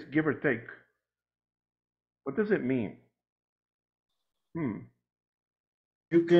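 A man speaks calmly through an online call, in short phrases with pauses.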